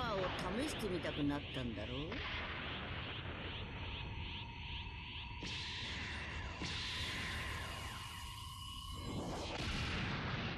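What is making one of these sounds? A roaring rush of energy rumbles and crackles.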